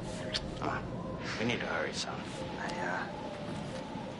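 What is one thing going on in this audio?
A young woman speaks quietly, close by.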